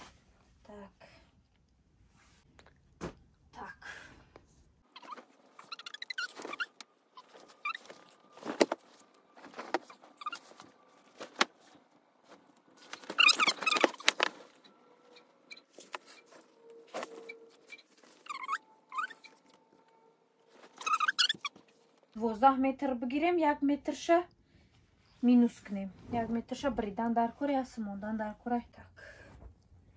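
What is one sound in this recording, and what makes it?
Fabric rustles and flaps.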